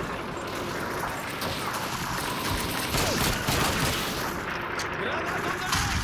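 A submachine gun fires short bursts close by.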